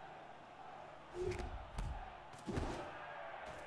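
A ball is kicked with a heavy thud.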